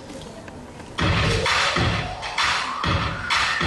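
A group of young women sing loudly through microphones in a large hall.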